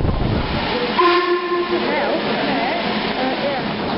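A steam locomotive rolls slowly past close by.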